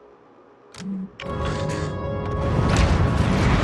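A spacecraft engine roars loudly.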